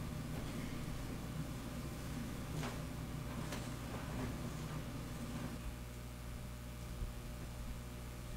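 A man's footsteps walk softly.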